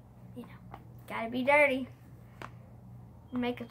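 A plastic case rattles in a girl's hands.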